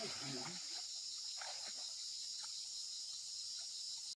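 A man wades through shallow water with splashing steps.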